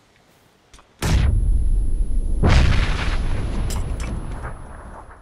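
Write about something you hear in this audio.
A grenade explodes with a loud, deep blast.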